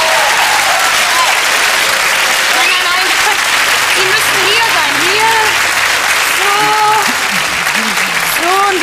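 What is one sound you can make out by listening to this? A large audience claps and cheers loudly in an echoing hall.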